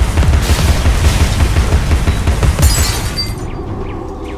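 A rapid-fire gun rattles loudly in quick bursts.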